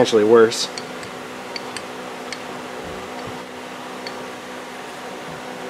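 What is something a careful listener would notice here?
A metal lathe motor hums steadily.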